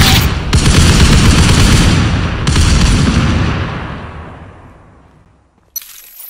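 A rifle fires rapid bursts close by, then the shots fade away.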